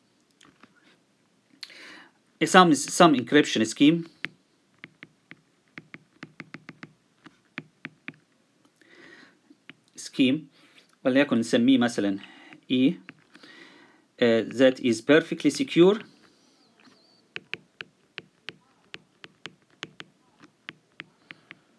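A stylus taps and scrapes lightly on a glass tablet.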